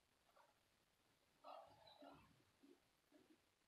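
Clothing fabric rustles briefly close by.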